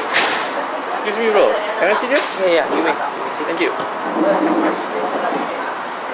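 Men and women chatter nearby.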